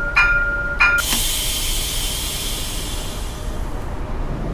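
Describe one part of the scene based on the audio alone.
Air hisses loudly as bus doors close, then fades.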